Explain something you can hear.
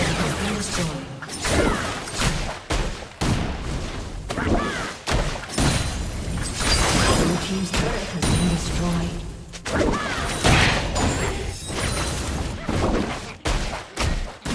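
Video game spell effects whoosh and crackle during a battle.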